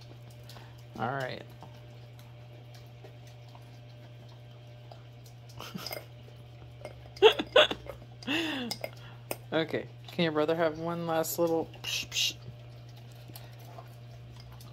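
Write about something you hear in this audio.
A dog licks and slurps at a frozen treat.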